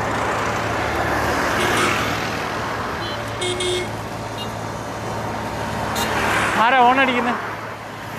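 Traffic roars past on a busy road outdoors.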